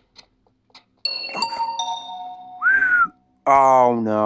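A video game alarm blares with a sharp, ringing tone.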